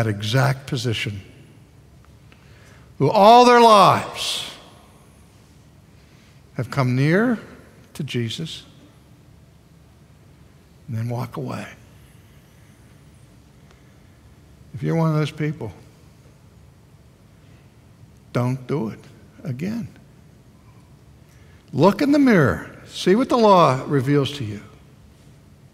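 An elderly man speaks with animation through a headset microphone, in phrases broken by pauses.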